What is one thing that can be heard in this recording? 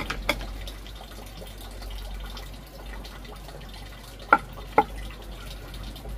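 A knife chops sharply on a wooden board.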